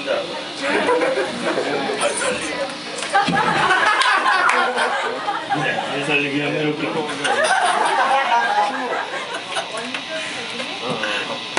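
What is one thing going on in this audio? An electric guitar plays distorted chords through an amplifier.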